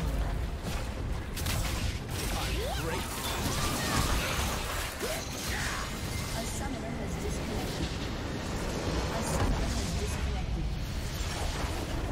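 Game spells and attacks clash and burst in a dense battle.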